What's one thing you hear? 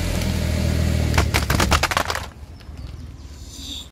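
A car tyre crushes a plastic keyboard with sharp cracks.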